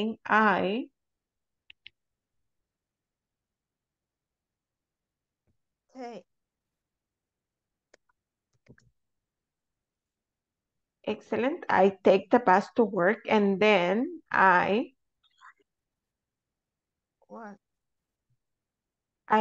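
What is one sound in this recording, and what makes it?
A woman speaks through an online call, calmly and in short bursts.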